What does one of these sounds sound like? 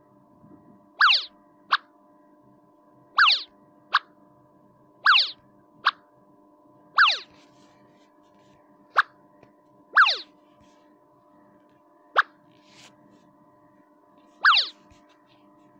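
A quick falling whistle plays as each item drops into place.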